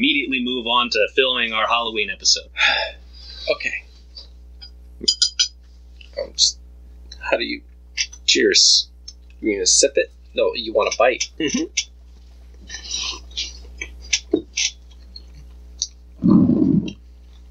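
A bearded man talks and laughs near a microphone.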